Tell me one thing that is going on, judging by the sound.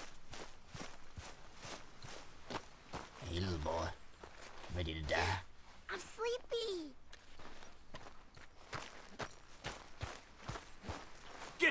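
Footsteps crunch on dirt at a steady pace.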